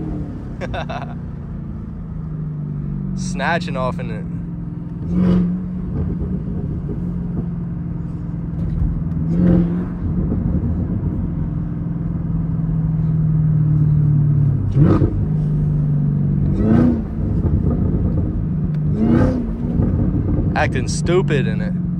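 A car engine rumbles low and steady, its pitch stepping as gears change.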